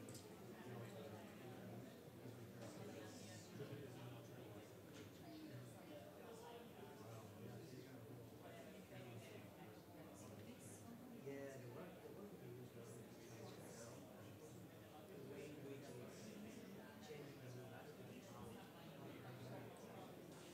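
Several men and women chatter at once in a large room.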